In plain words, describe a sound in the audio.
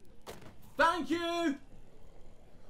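A young man shouts excitedly into a microphone, close by.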